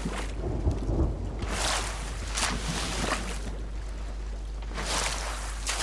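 Ocean waves roll and wash nearby.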